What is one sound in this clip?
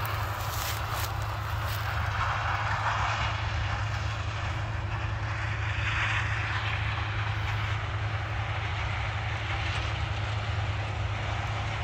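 Combine harvesters drone in the distance.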